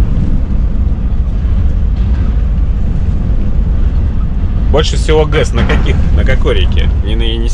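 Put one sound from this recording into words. A truck engine rumbles steadily from inside the cab while driving.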